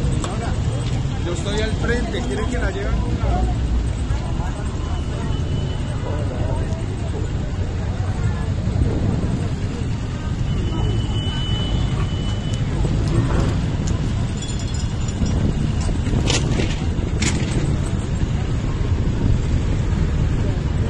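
Adults talk excitedly at a distance.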